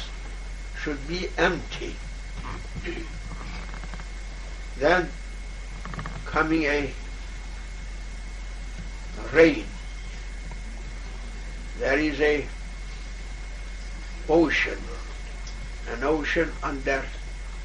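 An elderly man speaks calmly in short phrases with long pauses, close by.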